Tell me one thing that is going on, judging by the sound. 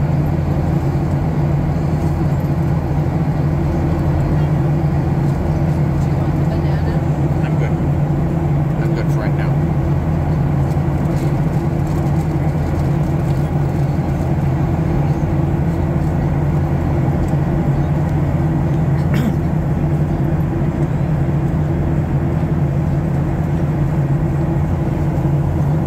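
A jet engine roars with a steady, deep drone, heard from inside the cabin.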